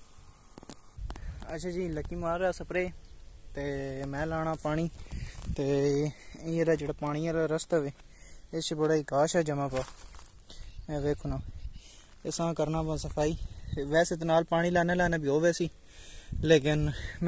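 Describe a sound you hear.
A young man talks close to the microphone, calmly and steadily.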